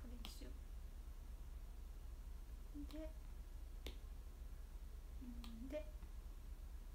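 A young woman speaks softly in short, quiet bursts.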